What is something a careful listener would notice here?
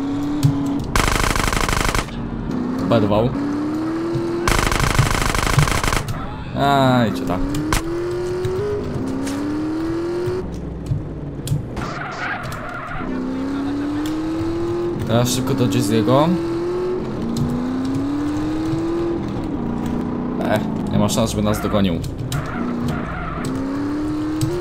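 A motorbike engine revs and whines, rising and falling in pitch.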